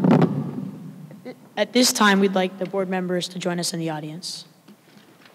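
A boy speaks into a microphone in a large echoing hall.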